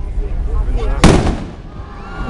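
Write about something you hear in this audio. A firework explodes with a loud bang.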